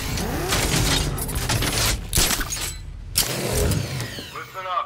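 A grappling line fires and whirs.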